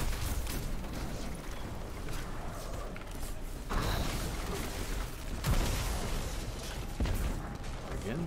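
Gunfire and blasts crack and boom.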